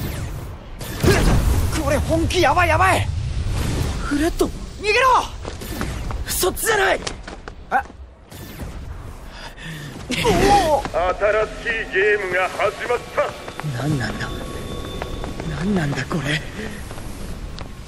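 A young man speaks anxiously and urgently.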